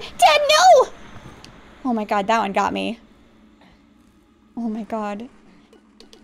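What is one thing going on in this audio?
A young woman speaks with animation and laughs into a microphone.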